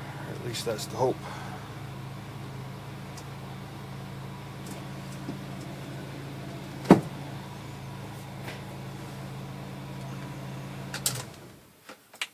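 A car engine idles with a steady low hum, then cuts off.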